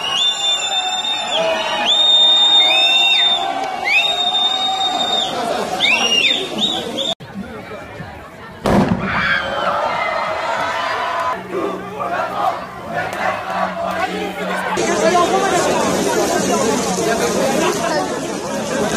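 A crowd of young people shouts and whistles outdoors.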